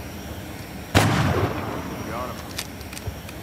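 A heavy gun fires a loud blast that echoes away.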